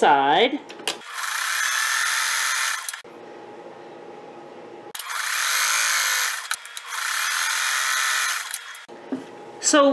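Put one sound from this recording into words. A sewing machine whirs as it stitches in short bursts.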